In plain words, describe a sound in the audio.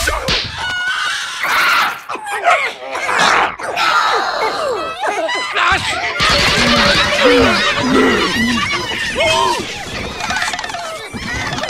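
Cartoon creatures squeal and chatter excitedly in high, squeaky voices.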